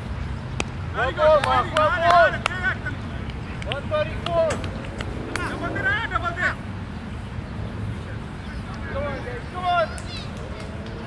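Men call out to each other across an open field.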